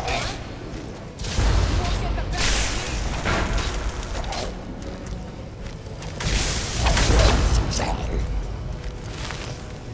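A magic spell crackles and hums.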